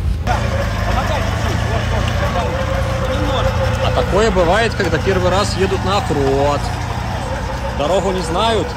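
An off-road vehicle's engine rumbles steadily at low speed.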